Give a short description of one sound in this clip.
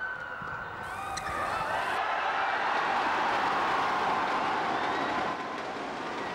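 A large crowd cheers and roars loudly in a big echoing hall.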